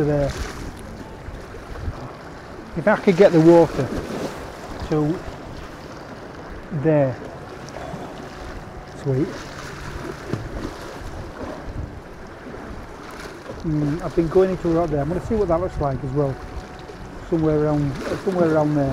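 Water laps and splashes against steps.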